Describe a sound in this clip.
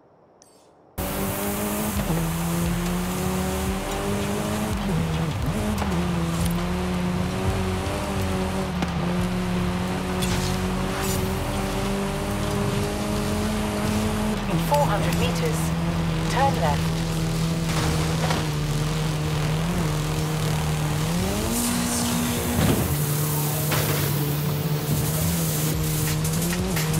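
A car engine revs high and shifts gears as it speeds along.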